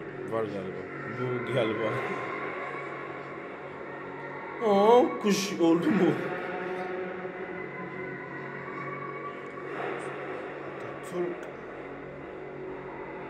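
Dramatic music plays through a loudspeaker.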